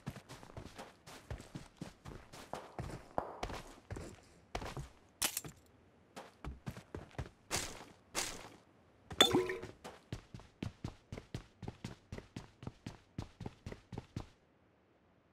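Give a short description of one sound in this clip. Footsteps thud quickly on snow and wooden boards.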